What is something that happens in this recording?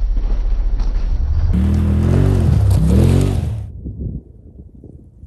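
A side-by-side's engine revs hard as it roars past and fades away.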